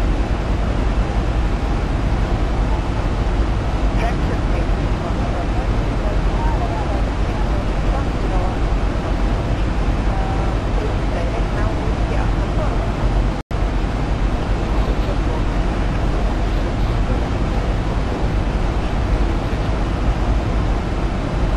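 Jet engines roar steadily from inside an airliner's cabin.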